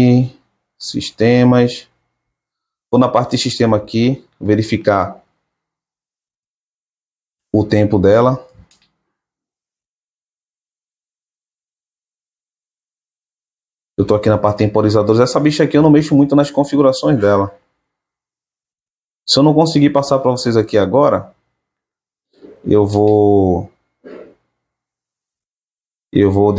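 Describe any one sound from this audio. A young man speaks calmly close by, in short bursts with pauses.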